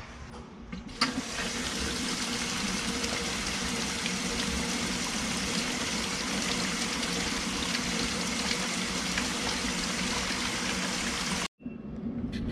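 Water pours steadily from a hose into a tub.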